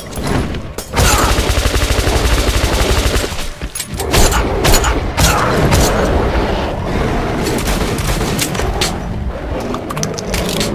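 Gunshots crack in rapid bursts, echoing in an enclosed space.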